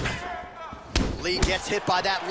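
A blow lands with a dull thud.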